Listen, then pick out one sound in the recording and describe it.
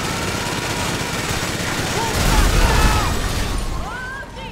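A minigun fires in rapid bursts.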